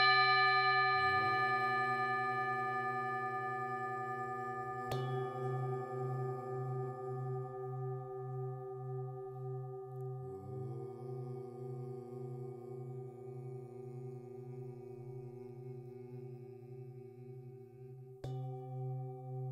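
A mallet rubs around the rim of a singing bowl, making a wavering hum.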